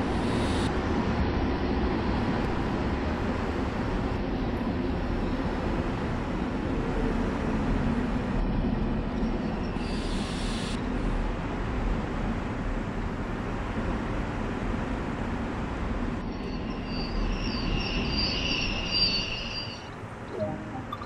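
A train rumbles along the tracks and slows down.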